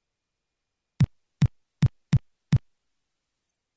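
Footsteps thump across a floor at a steady pace.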